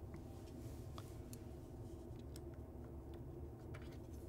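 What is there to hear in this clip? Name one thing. Fingers click lightly against a metal part.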